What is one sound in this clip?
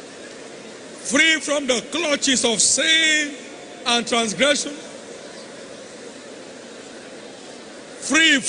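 A man preaches forcefully through a microphone in a large echoing hall.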